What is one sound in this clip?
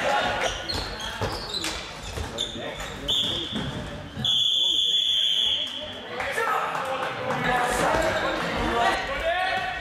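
Sneakers squeak on a hard hall floor.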